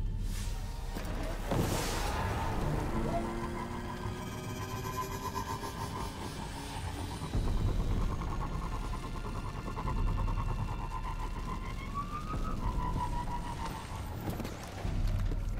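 A hover vehicle engine hums and whines steadily.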